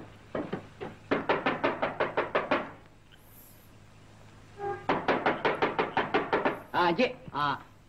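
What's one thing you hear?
Rapid knocking raps on a wooden door.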